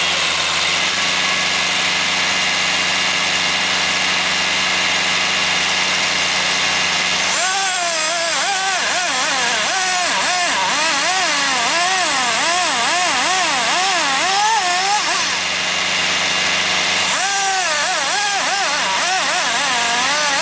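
A tractor engine runs steadily nearby.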